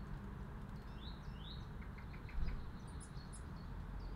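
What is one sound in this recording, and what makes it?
A small bird chirps close by.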